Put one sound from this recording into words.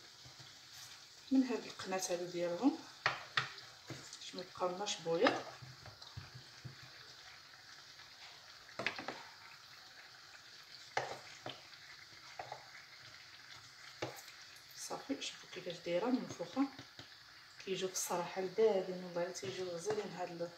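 A metal spatula scrapes and clinks against a frying pan.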